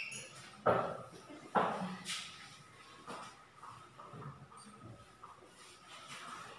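A cloth rubs and wipes across a chalkboard.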